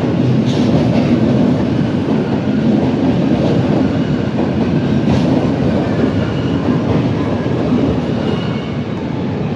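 A train rumbles past close by on the rails.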